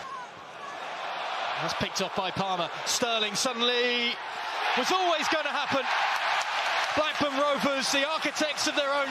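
A stadium crowd roars and cheers loudly after a goal.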